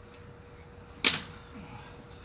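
A hard knock sounds once.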